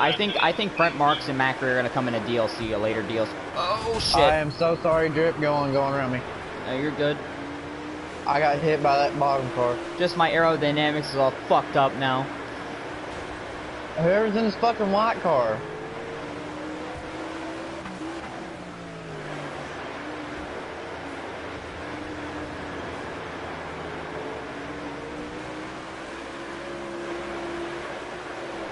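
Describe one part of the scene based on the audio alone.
A race car engine roars and revs.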